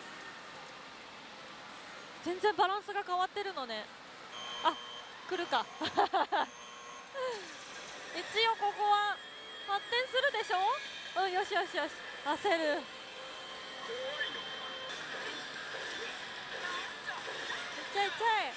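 A pachinko machine chimes and plays electronic music.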